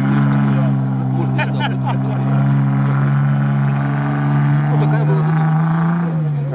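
An off-road vehicle's engine rumbles steadily nearby, outdoors.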